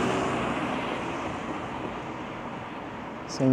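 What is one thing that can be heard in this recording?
A car drives past on a street and fades away.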